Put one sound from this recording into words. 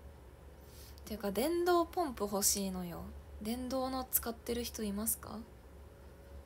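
A young woman speaks calmly and close to a microphone.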